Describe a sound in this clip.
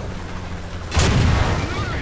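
A shell explodes nearby with a blast.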